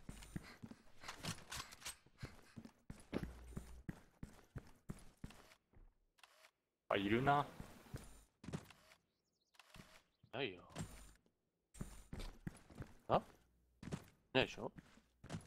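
Footsteps tap quickly on hard stone.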